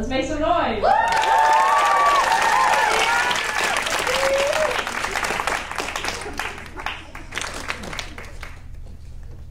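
An audience cheers and applauds loudly.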